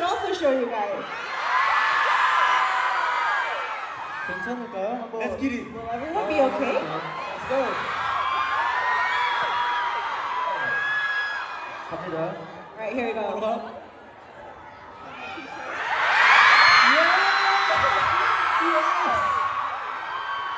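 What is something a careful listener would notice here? A crowd of young women screams and cheers loudly.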